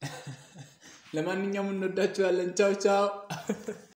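A young man laughs nearby.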